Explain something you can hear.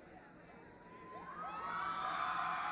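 A crowd cheers and whistles loudly.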